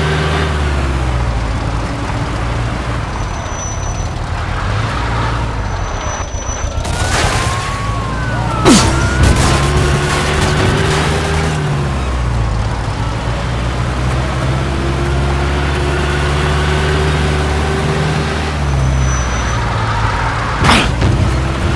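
A car engine hums and revs steadily.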